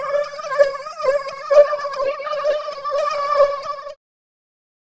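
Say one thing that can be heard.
Upbeat electronic game music plays with a bouncy melody.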